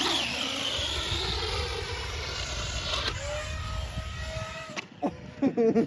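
A remote-control car's electric motor whines and revs up and down.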